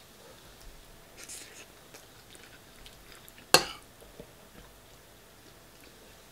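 A man chews food close by.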